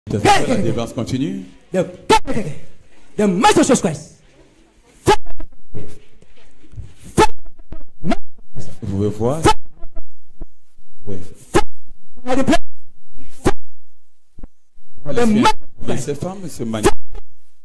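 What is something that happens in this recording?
A man prays loudly and forcefully into a microphone, close by.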